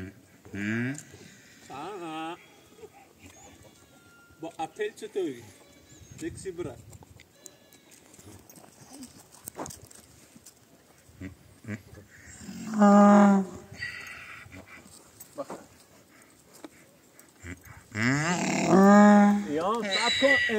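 A young man talks to an animal.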